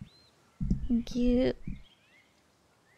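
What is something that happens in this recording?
A young woman speaks briefly and with animation into a microphone.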